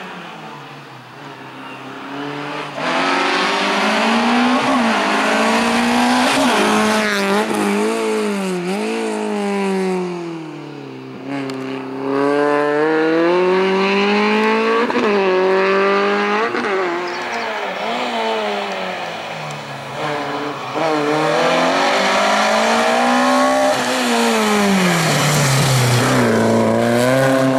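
A rally car engine revs hard, rising and falling as the car weaves through tight turns.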